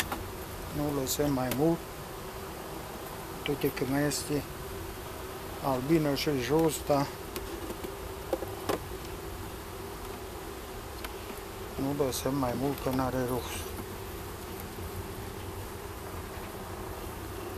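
Wooden hive frames knock and scrape.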